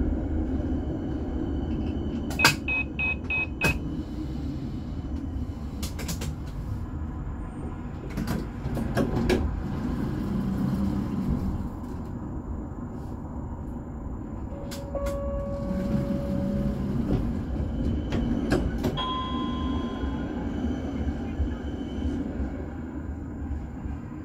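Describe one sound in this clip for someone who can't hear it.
A tram rumbles and rattles along its rails.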